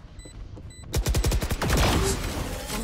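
A magical barrier bursts up with a loud crackling rush.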